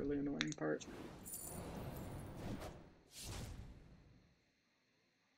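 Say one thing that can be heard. Computer game effects whoosh and clash.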